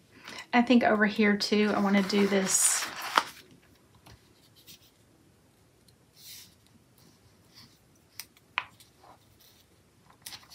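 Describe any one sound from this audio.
Paper rustles and taps softly as fingers press stickers onto a page.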